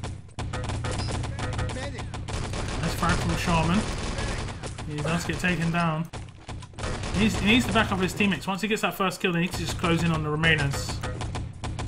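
Automatic gunfire rattles in quick bursts.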